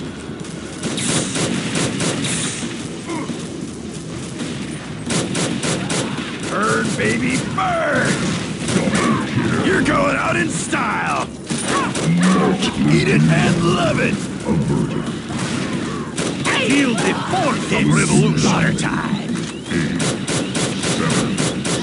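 A video game rifle fires in rapid bursts.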